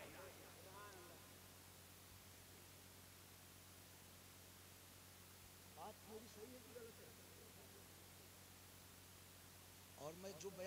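A man speaks with feeling into a microphone, heard through loudspeakers with long pauses.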